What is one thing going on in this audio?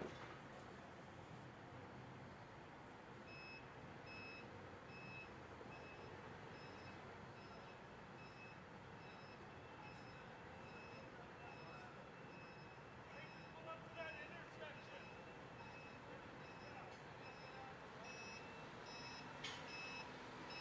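A car engine idles nearby outdoors.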